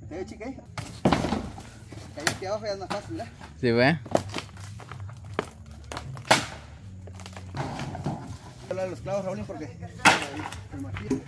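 Wooden poles thud and knock onto dirt ground.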